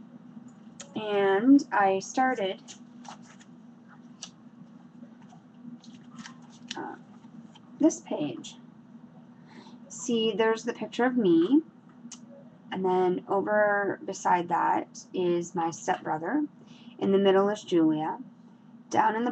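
A woman speaks close by with animation, in short bursts.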